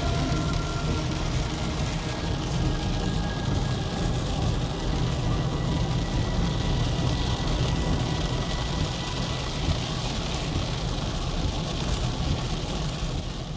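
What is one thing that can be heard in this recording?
A car's engine hums steadily as it drives along a road at night.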